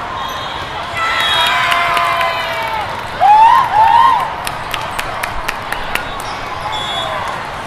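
Spectators clap and cheer.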